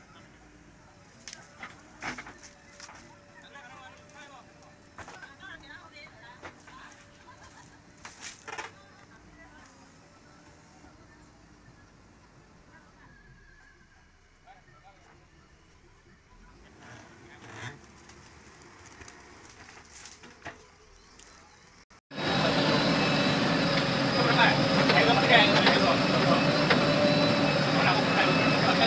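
A backhoe engine rumbles steadily nearby.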